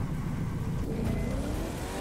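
A race car engine roars at speed.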